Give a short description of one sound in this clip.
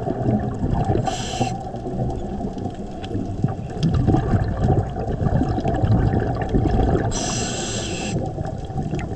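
A diver's regulator hisses with exhaled bubbles underwater.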